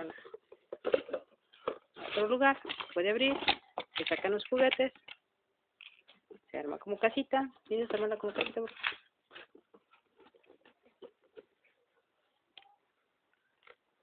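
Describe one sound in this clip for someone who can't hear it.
A plastic box clicks and rattles as it is handled.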